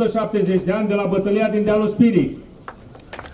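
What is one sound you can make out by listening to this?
A man speaks through a loudspeaker outdoors, drawing out his words.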